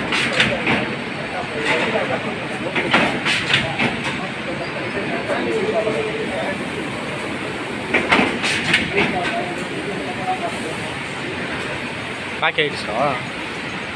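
A packaging machine hums and whirs steadily.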